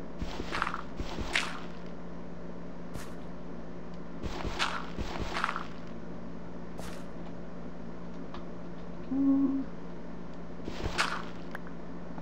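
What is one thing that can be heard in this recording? Blocks of earth crumble and break with short gritty crunches.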